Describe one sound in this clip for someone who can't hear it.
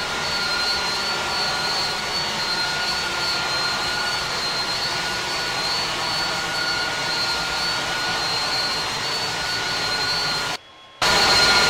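Jet engines roar steadily outside an airliner.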